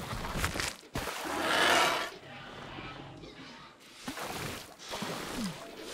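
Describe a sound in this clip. Water splashes loudly as a large creature plunges in.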